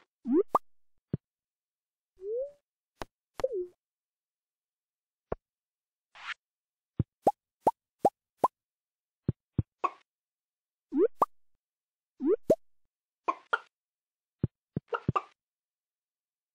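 Hens cluck in short, rising calls.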